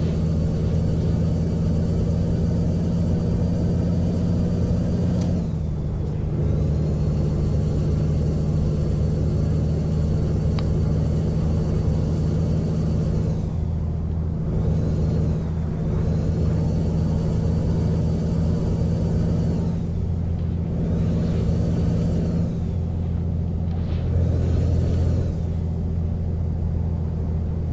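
A truck engine drones steadily as it cruises along a highway.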